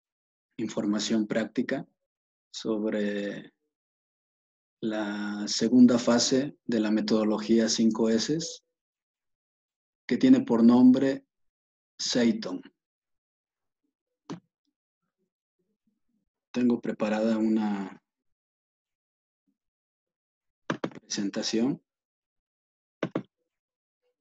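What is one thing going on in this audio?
A middle-aged man speaks calmly in short phrases, close to a microphone.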